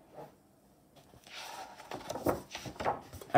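A paperback book rustles and flaps as it is handled.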